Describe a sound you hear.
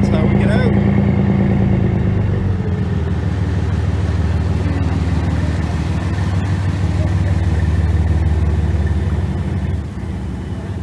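A boat engine idles nearby with a low, steady rumble.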